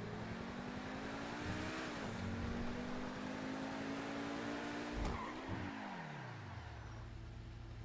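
A sports car engine roars loudly, rising in pitch and dropping with gear shifts.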